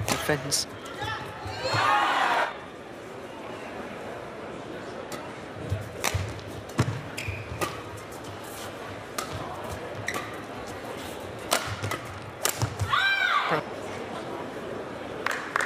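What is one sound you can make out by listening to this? Rackets strike a shuttlecock in a fast rally, echoing in a large hall.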